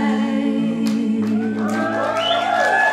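A band plays music with keyboard and acoustic guitar.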